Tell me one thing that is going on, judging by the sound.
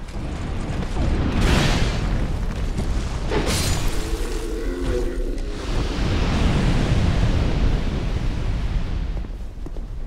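A heavy weapon clashes against armour in a fight.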